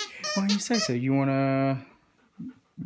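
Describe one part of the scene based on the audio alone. A dog lets out a short howl.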